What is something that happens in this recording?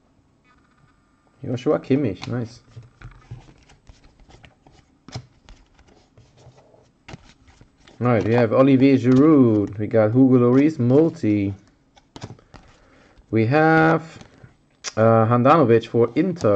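Trading cards shuffle and click softly as hands handle them.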